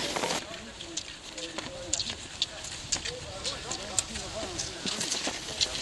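Ski poles click and tap on hard snow.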